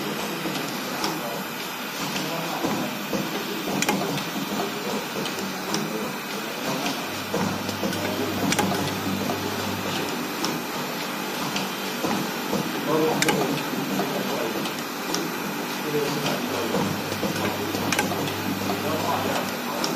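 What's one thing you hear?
An automatic machine hums and clicks steadily as it works.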